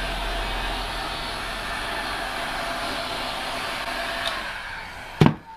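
A heat gun blows with a steady roar.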